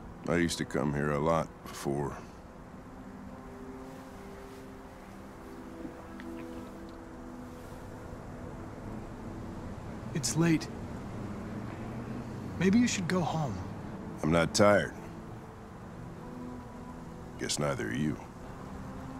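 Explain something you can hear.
An older man speaks in a low, weary voice.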